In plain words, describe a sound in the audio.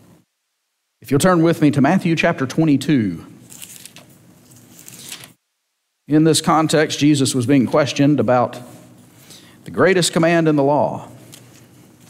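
A man speaks calmly into a microphone, heard over a loudspeaker in an echoing room.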